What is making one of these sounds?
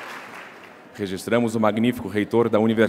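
A man speaks firmly into a microphone over loudspeakers in a large echoing hall.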